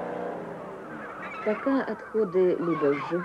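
A flock of birds calls and squawks overhead.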